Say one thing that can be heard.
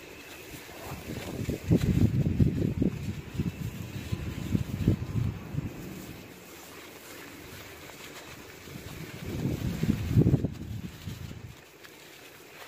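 Gloved hands crumble a lump of dry dirt, which crunches and falls apart.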